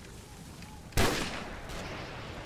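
A rifle fires a loud, sharp shot that echoes briefly.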